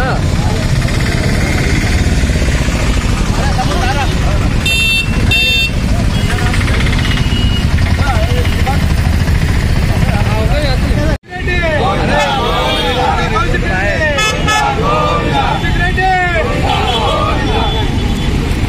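A crowd of men shouts slogans outdoors.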